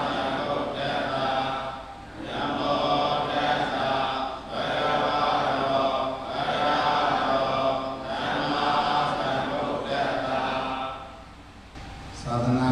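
A man chants steadily in a low voice through a microphone, with a slight echo.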